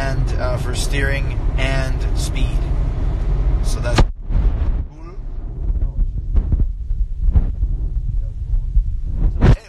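A car engine hums low and steadily from inside the car.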